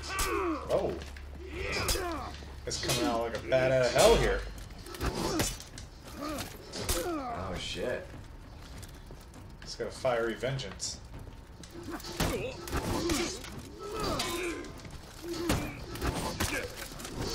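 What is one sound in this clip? Swords clash and clang sharply.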